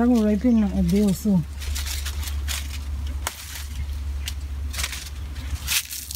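Leaves and stalks rustle as a woman climbs a tree.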